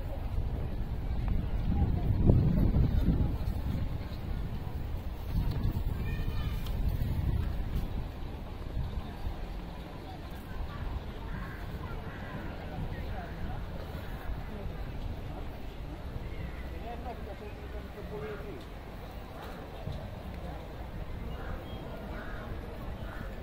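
Adults chat faintly in the distance.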